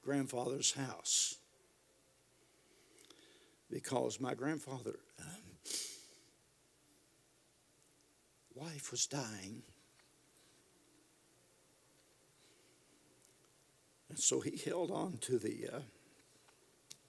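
An elderly man speaks calmly into a microphone, in bursts with pauses.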